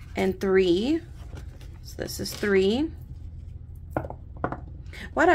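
Paper banknotes rustle and crinkle as hands handle them.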